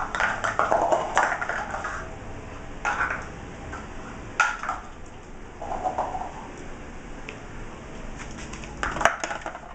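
A dog's paws patter and scrabble on a hard floor.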